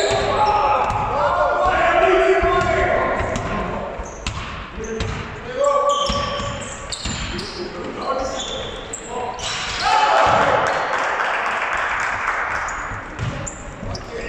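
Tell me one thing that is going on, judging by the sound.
A crowd of players and spectators shouts and cheers.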